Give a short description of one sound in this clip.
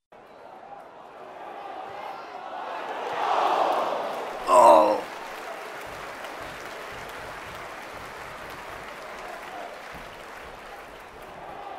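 A large stadium crowd murmurs and roars.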